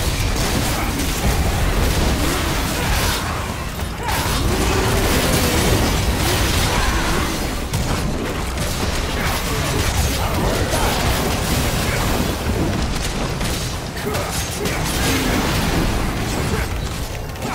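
Blades slash and clang in quick hits.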